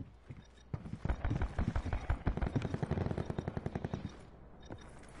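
Footsteps thud quickly.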